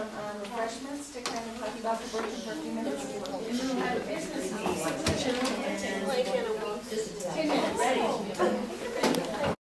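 A young woman speaks steadily to a room, with a slight echo.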